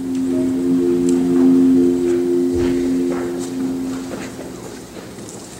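A marimba plays a few soft, ringing notes that slowly fade away.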